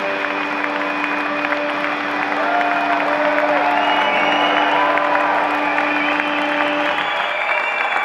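Guitars and a mandolin ring out a final chord in a large hall, then stop.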